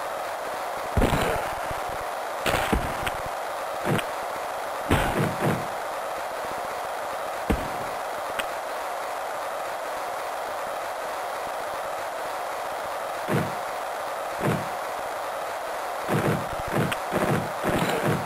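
Game sound effects of hits and thuds ring out now and then.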